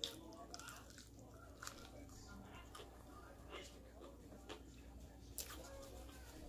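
Fried food crackles and snaps as hands break it apart.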